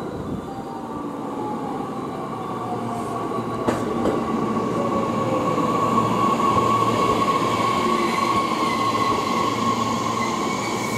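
Train brakes squeal with a steady high whine.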